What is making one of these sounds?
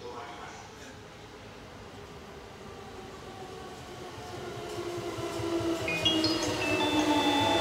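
A train approaches with a growing rumble and passes close by.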